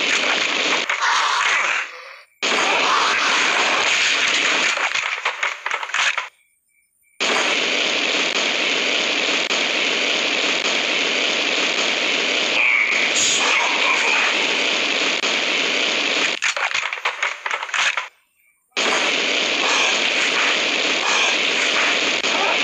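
A flamethrower roars in long, loud bursts with short pauses between them.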